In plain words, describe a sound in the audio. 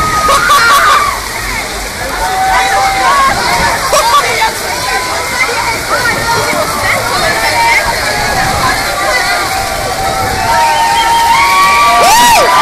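A crowd of young people shouts and sings nearby outdoors.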